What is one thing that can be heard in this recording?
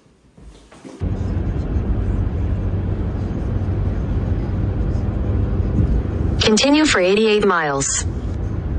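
A car drives on a highway, its road noise rumbling from inside.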